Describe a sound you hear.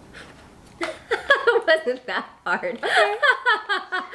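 Another young woman laughs along close by.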